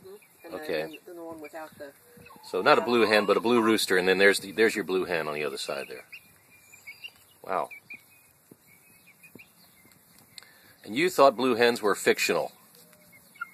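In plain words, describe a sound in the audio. Chickens cluck and squawk nearby.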